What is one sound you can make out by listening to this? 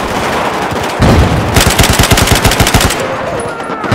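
A machine gun fires a rapid burst close by.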